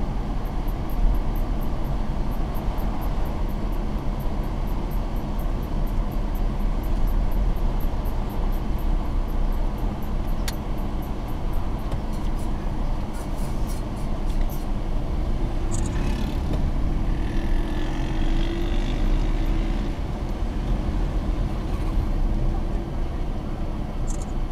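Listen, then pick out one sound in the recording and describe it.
Tyres roll over asphalt.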